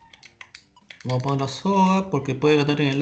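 A man speaks into a microphone in a calm voice.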